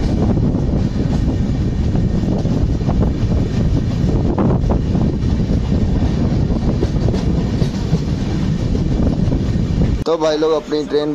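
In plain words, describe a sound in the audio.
A train rumbles loudly along the tracks.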